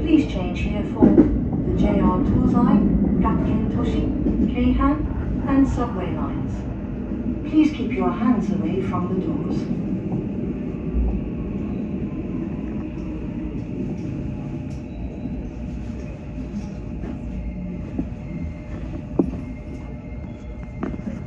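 A train rumbles along the tracks and gradually slows.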